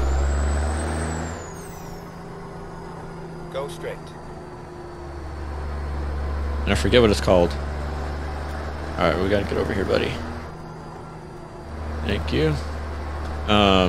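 A truck engine rumbles low and steady, rising and falling.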